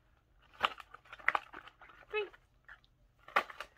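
Plastic packages rustle and crinkle in a hand.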